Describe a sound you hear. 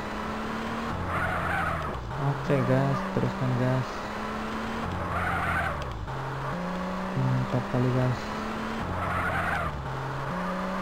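Tyres screech as a car skids around a turn.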